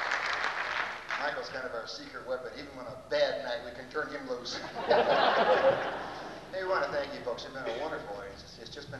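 A young man speaks through a microphone on a loudspeaker in a large hall.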